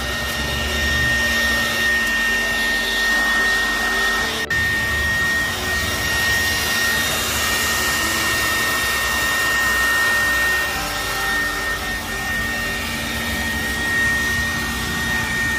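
A vacuum nozzle scrapes and sucks across carpet.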